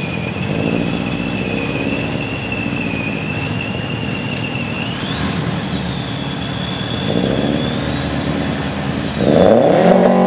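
A car engine idles roughly and revs nearby.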